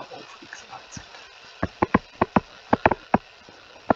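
A stylus taps and scratches on a tablet surface.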